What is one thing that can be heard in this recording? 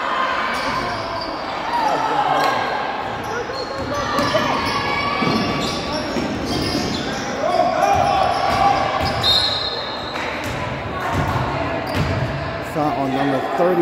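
Sneakers squeak on a hardwood floor in a large echoing gym.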